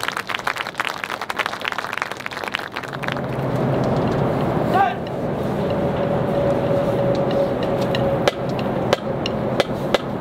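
Drums tap a quick rhythm.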